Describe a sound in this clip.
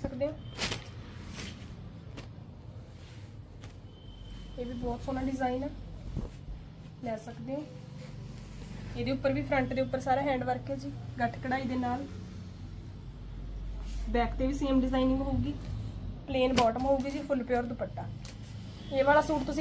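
Cloth rustles softly as hands smooth and fold it.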